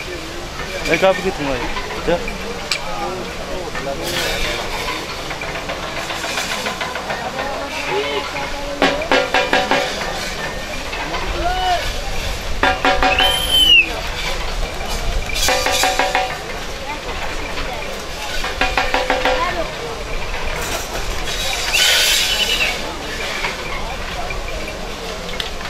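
A large outdoor crowd murmurs and chatters throughout.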